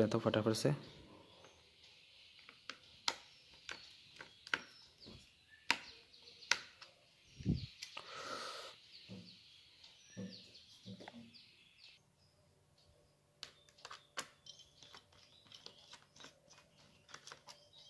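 A screwdriver clicks and ticks softly as it turns small screws.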